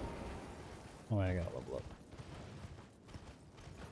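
A horse's hooves gallop over snow.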